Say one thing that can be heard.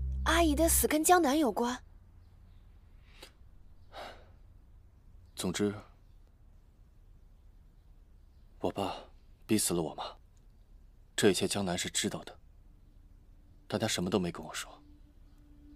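A young woman asks a question in a surprised, worried voice, close by.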